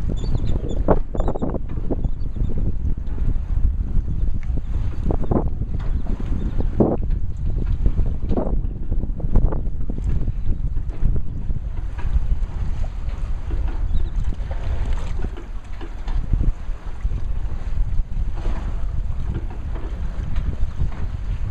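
Small waves lap on open water.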